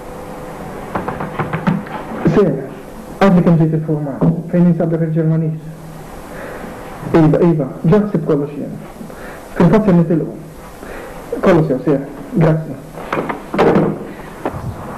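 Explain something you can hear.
A middle-aged man talks into a telephone close by.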